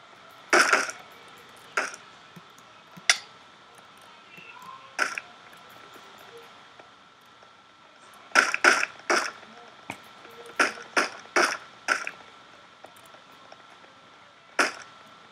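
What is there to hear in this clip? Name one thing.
A slime squishes in short bursts as it is struck.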